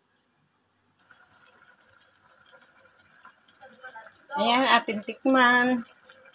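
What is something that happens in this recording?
A pot of liquid bubbles and simmers.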